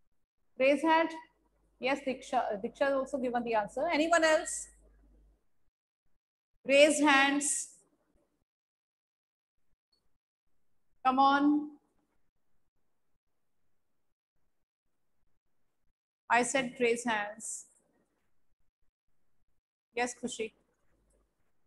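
A young woman speaks calmly and clearly into a microphone, in short bursts with pauses.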